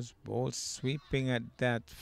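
A cricket bat strikes a ball with a sharp crack.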